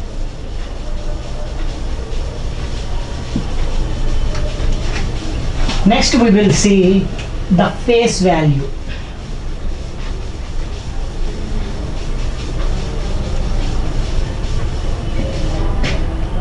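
A cloth wipes across a whiteboard.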